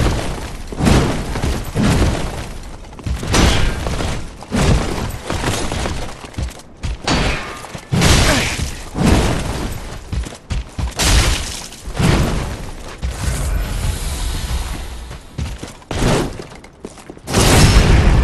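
Swords clash and clang against armour and shields.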